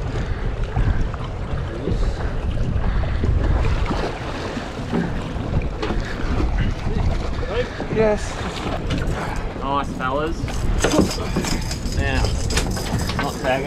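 Wind blows and waves wash against a boat's hull.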